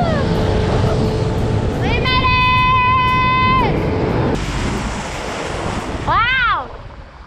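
A jet ski engine roars as it speeds over the water.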